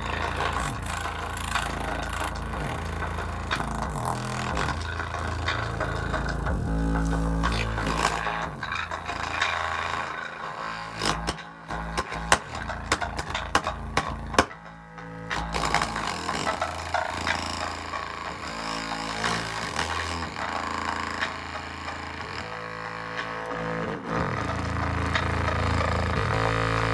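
Music plays through a small loudspeaker, muffled and buzzing as a hand presses on it.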